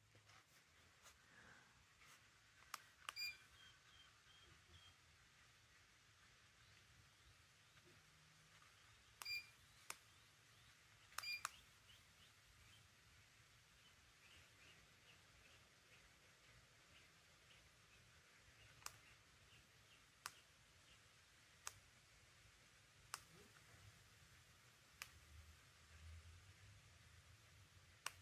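A ceiling fan whirs steadily.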